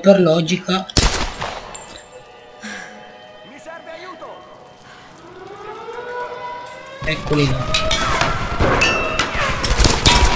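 Pistol shots ring out, sharp and loud, with a short echo.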